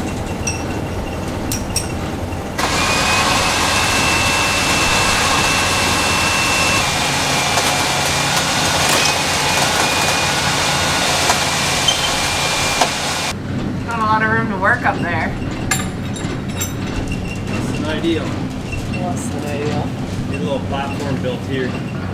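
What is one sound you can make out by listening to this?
Footsteps clang on a metal ladder.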